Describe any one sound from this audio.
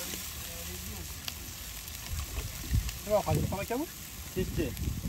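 Soup bubbles gently in a pot.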